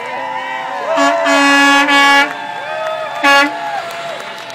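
A truck sounds its horn.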